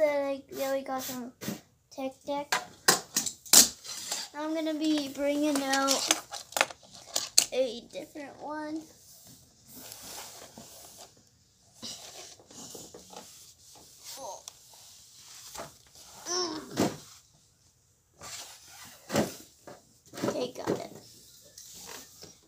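A small board clacks and rolls on a wooden ramp.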